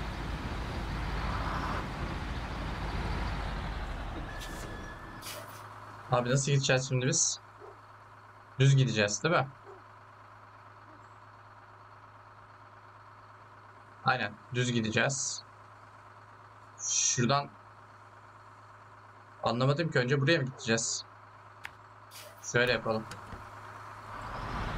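A truck engine rumbles steadily.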